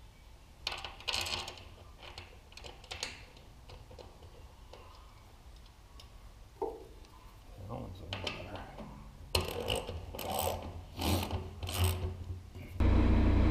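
A brush scrubs against a metal bucket in short strokes.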